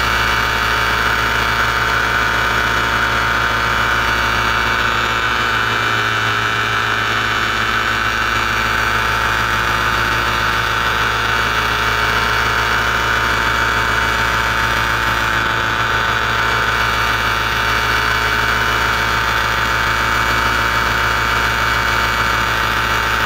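A paramotor engine drones steadily overhead.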